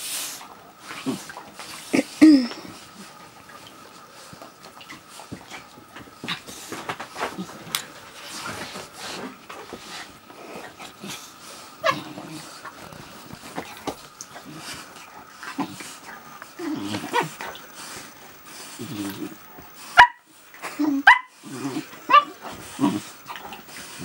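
A puppy yips and whines in short high bursts.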